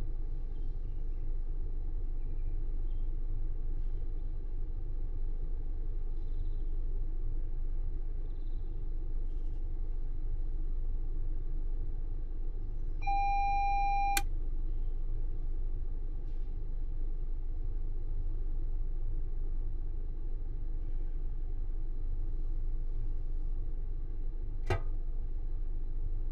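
A low electric hum drones steadily throughout.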